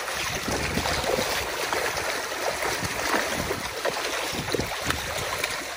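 Crowded fish thrash and splash loudly at the water's surface.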